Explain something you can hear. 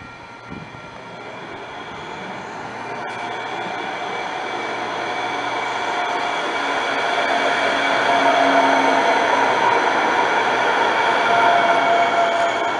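A light rail train approaches and rolls past close by.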